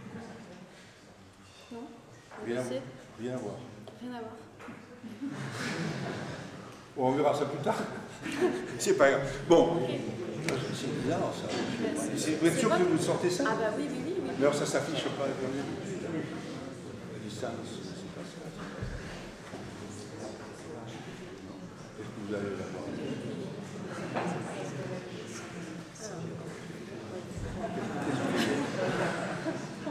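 A middle-aged man talks through a microphone.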